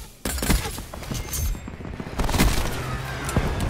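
A crossbow fires with a sharp snap.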